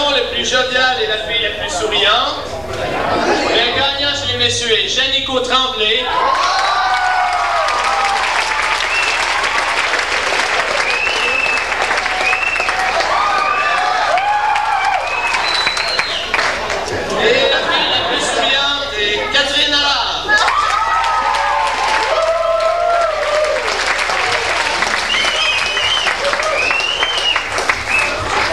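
A crowd of young people cheers and screams loudly in a large hall.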